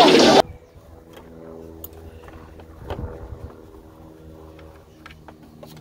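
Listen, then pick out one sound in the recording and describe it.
A wrench clicks against metal parts of an engine.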